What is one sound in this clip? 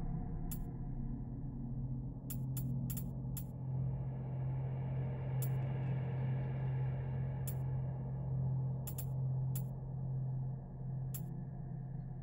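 Short menu clicks tick as a cursor moves from item to item.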